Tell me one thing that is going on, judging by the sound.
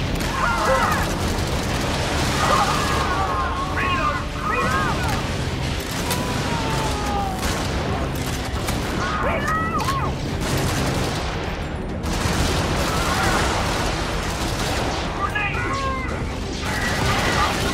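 Gunfire and laser blasts rattle steadily.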